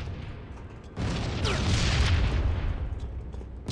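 A rifle fires in a burst of loud shots.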